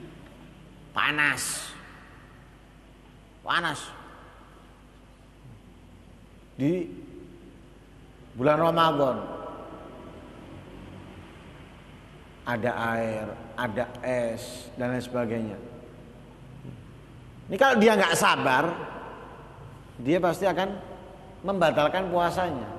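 A man speaks with animation into a microphone, in bursts with pauses, in an echoing hall.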